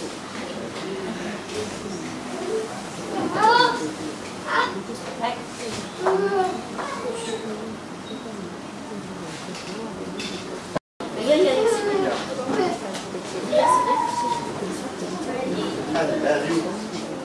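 Children's voices chatter and call out in an echoing hall.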